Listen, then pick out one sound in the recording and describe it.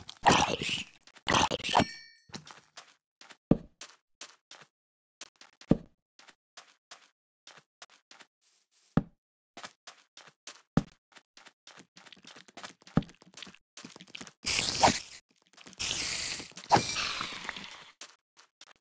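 A sword swings through the air.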